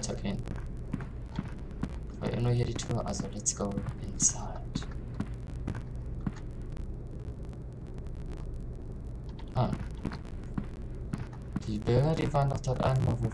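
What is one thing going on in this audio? Slow footsteps knock on a wooden floor.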